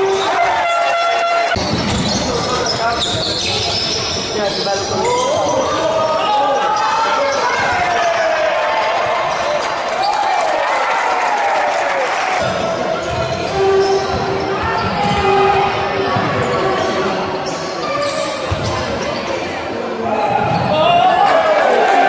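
Sneakers squeak sharply on a hardwood court in an echoing hall.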